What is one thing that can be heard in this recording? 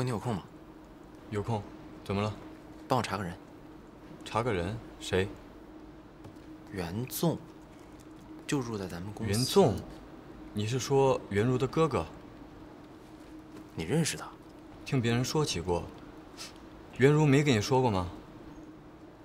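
A second young man asks questions with animation, close by.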